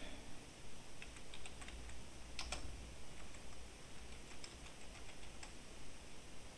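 Keys clatter on a computer keyboard in quick bursts.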